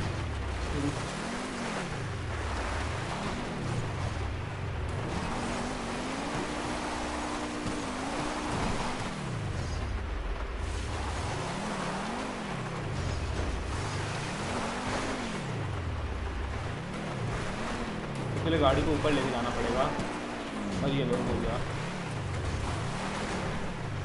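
A sports car engine revs up and down again and again.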